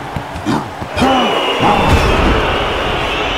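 A deep booming thud sounds.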